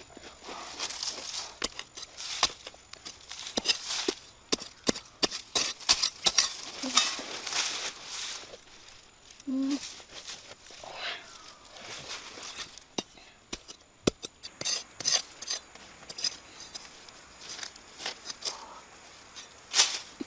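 Hands scrape and dig through dry, crumbly soil.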